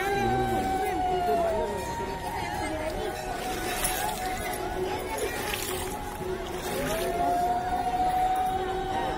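Several women talk and call out nearby, outdoors.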